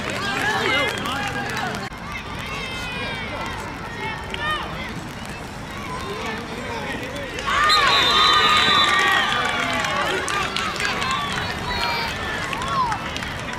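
A crowd of spectators talks and cheers outdoors.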